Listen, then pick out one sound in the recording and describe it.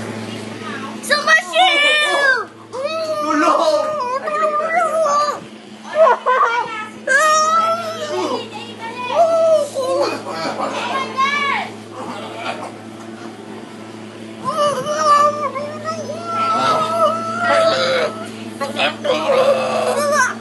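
A young woman laughs and shrieks close by.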